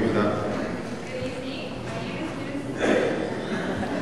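A young woman speaks through a microphone in an echoing hall.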